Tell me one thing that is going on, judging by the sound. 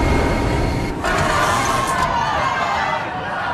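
A man groans and cries out in distress.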